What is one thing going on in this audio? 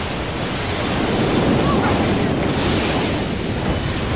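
Thunder rumbles as lightning strikes.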